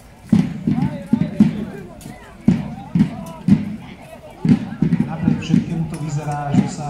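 A crowd of onlookers murmurs and chatters in the distance.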